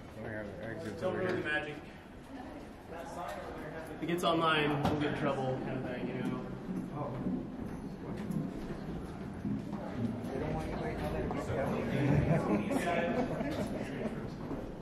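Several young women chat nearby in an echoing stairwell.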